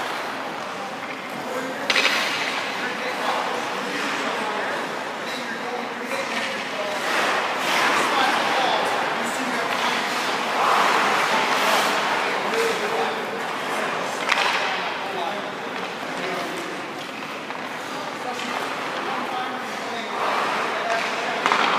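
A man speaks calmly nearby in a large echoing hall.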